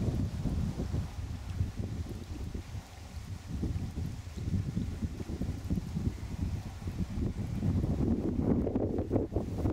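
Wind blows outdoors, rumbling in gusts.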